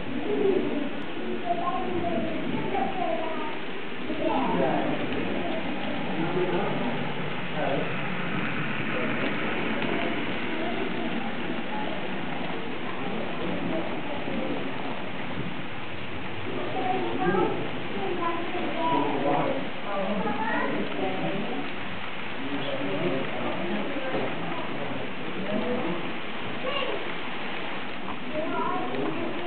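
The wheels of an HO scale model freight train rumble and click along the rail track.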